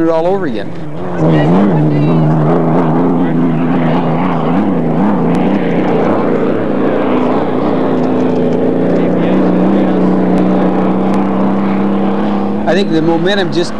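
A racing boat's engine roars loudly across the water.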